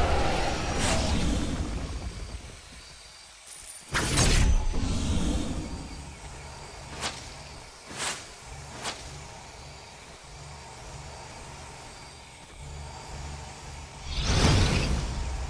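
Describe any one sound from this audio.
Magic blasts and explosions burst with sudden whooshes and booms.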